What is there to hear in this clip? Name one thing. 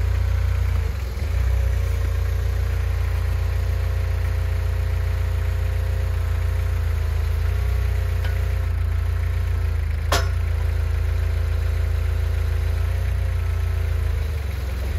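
A hydraulic crane arm whines as it swings and lifts.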